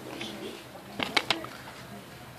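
A plastic disc case clicks open.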